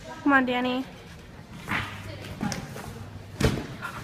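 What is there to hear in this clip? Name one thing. A gymnast lands on a padded beam with a dull thud.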